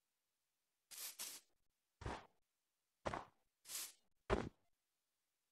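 Blocky footsteps tap on stone.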